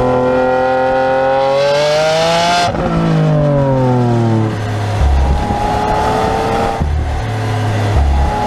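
Wind rushes past an open car.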